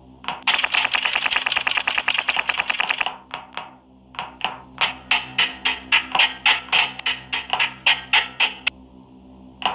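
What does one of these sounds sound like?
Quick footsteps clank on metal rungs and grating.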